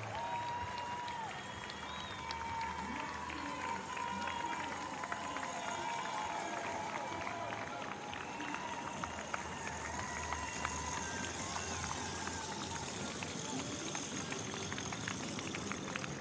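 A crowd of spectators cheers and whistles along a street outdoors.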